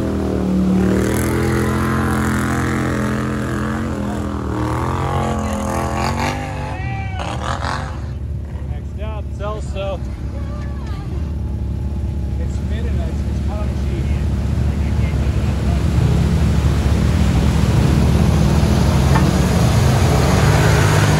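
Mud and water splash and slosh under tyres.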